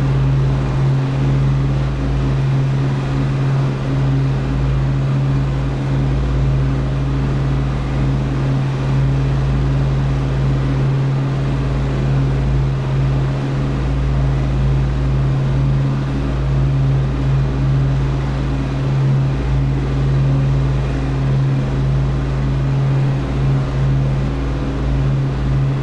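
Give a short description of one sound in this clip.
An aircraft engine drones steadily with a deep hum.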